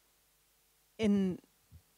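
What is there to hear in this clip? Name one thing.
A younger woman speaks briefly into a microphone.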